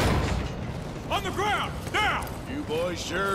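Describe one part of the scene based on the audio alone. A man shouts a command.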